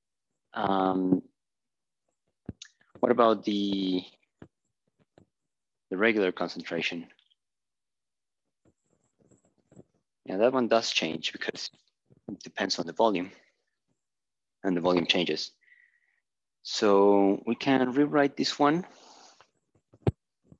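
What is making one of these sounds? A man lectures calmly in short phrases, close by.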